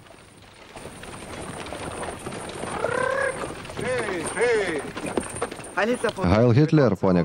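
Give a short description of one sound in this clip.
Wooden cart wheels creak and rattle.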